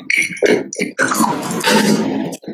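A plastic toy ball clicks and rattles against teeth.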